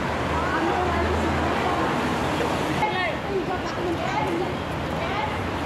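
A group of women chatter and call out with animation outdoors.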